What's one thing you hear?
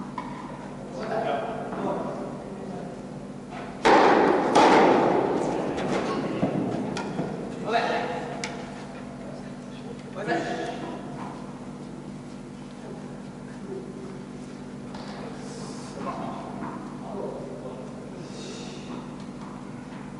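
A man calls out across an echoing hall.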